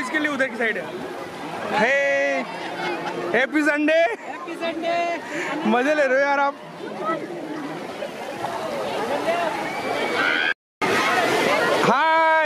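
A crowd of people shout and chatter outdoors.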